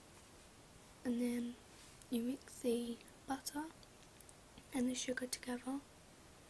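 A young woman speaks close to the microphone in short, high phrases.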